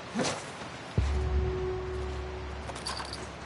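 A heavy thump booms on a hollow metal floor.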